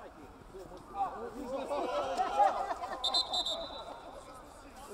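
Players shout to each other across the field.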